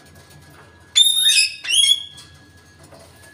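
A parrot whistles and squawks loudly in short bursts.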